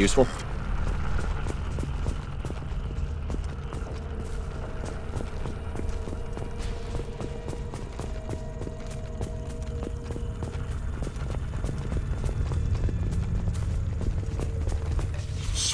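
Footsteps crunch on dry grass.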